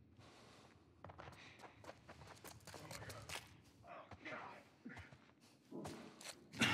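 Footsteps shuffle over debris on a hard floor.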